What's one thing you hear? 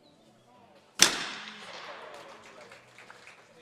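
A shotgun fires a single loud shot that echoes outdoors.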